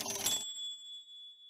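A game chime rings.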